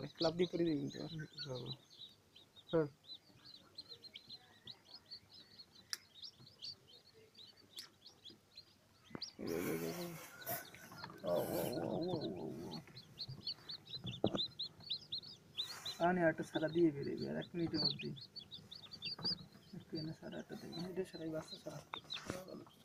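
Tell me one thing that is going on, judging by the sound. Newly hatched chicks peep shrilly.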